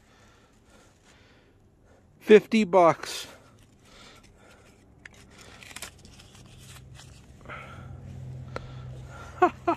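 Paper banknotes rustle softly in a hand.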